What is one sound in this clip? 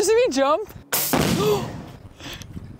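An air rifle fires with a sharp pop.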